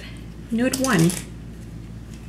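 A young woman speaks up close in a brief, lively burst.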